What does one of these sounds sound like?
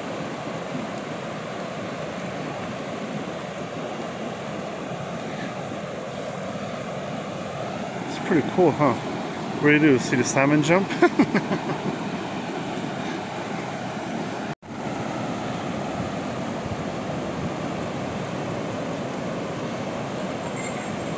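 A river rushes steadily over rapids nearby.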